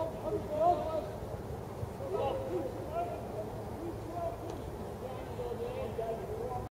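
Young men call and shout to each other some way off outdoors.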